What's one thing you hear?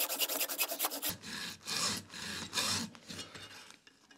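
A hand saw rasps back and forth in quick strokes.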